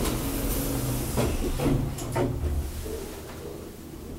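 Elevator doors slide shut with a soft thud.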